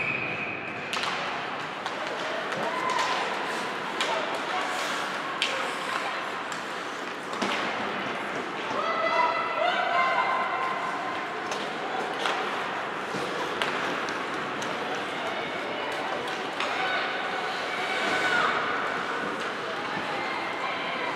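Hockey sticks clack against the ice and puck.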